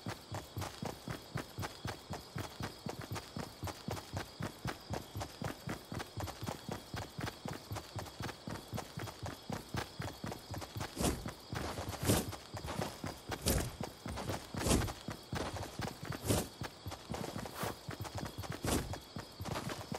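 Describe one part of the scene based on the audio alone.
Footsteps patter quickly on grass and dirt.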